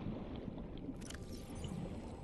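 A soft bubbling whoosh sounds briefly.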